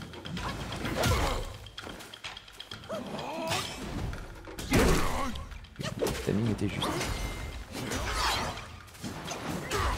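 Blows and impacts thud in a fight.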